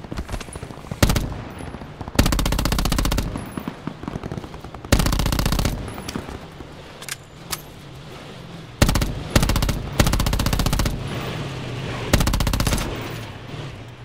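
An automatic rifle fires loud bursts.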